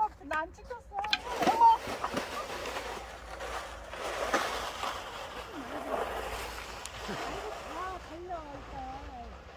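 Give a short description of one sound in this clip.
A plastic sled scrapes and slides over ice.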